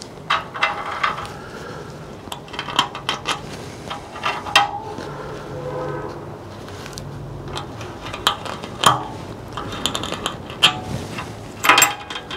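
A metal tool scratches on a sheet of metal.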